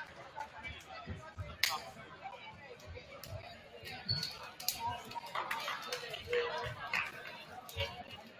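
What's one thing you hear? Players slap hands as they pass each other.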